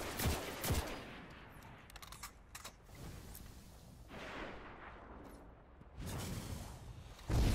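A rifle fires sharp, booming shots.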